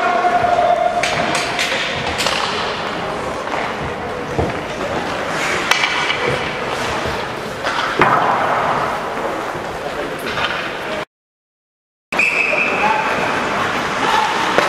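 Hockey sticks clack against the ice.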